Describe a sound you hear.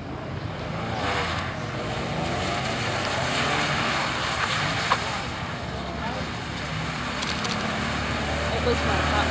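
Tyres hiss and splash across a wet surface.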